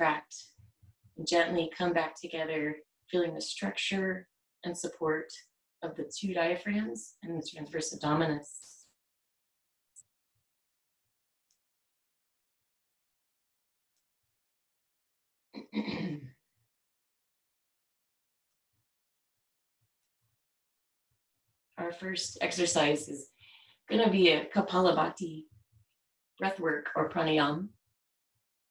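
A woman speaks calmly and slowly, close to the microphone, with long pauses.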